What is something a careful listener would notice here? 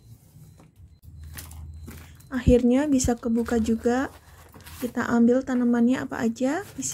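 Cardboard tears and rips open.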